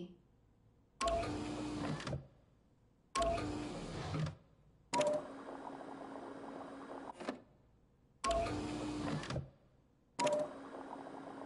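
A machine pumps liquid with short whirring bursts.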